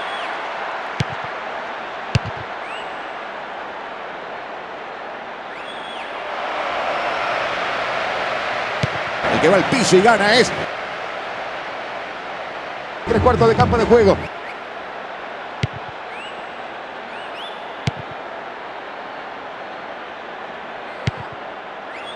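A football is kicked with short dull thuds.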